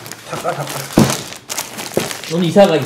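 A cardboard box thumps down onto a table.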